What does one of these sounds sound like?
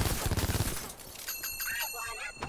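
A toy monkey clashes its cymbals with a bright ringing jingle.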